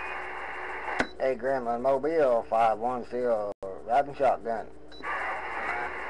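A garbled, warbling transmission bursts through a radio loudspeaker.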